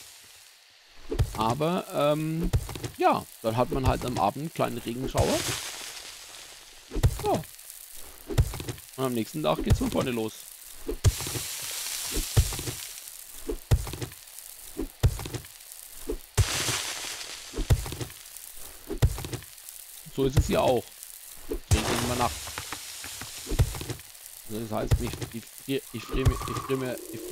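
A stone hand tool strikes rock in repeated blows.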